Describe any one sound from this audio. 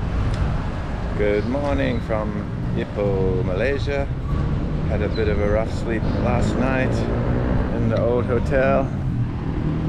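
A middle-aged man talks calmly and close up to a microphone outdoors.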